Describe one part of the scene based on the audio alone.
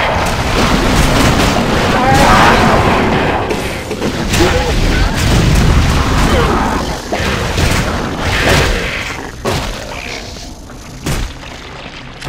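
Blows and impacts thud sharply again and again.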